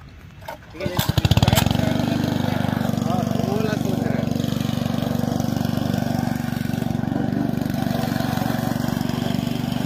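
A lawn mower engine starts and runs with a steady drone.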